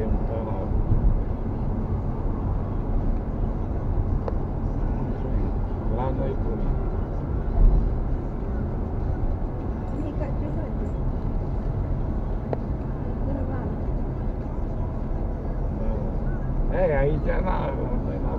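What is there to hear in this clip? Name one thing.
Tyres roar steadily on the road, heard from inside the car.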